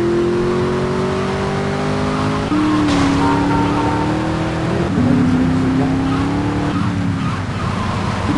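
A van engine hums steadily, shifting pitch as it drives.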